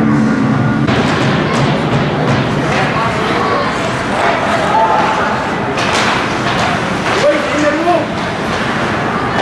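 Hockey sticks click against the puck.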